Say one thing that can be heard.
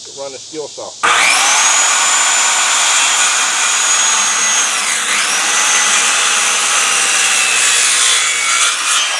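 A circular saw whines loudly as it cuts through wood.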